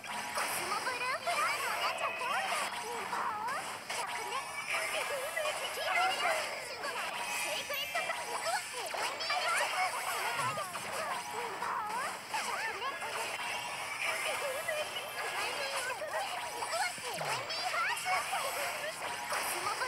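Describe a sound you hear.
Magic spells whoosh and burst.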